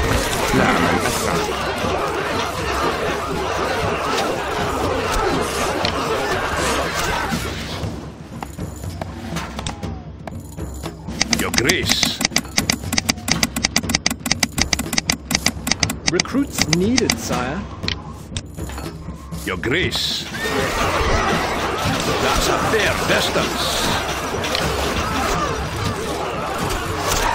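Soldiers shout in a battle.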